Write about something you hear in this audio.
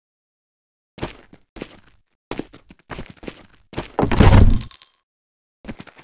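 A heavy metal gun clanks and thuds as it is handled.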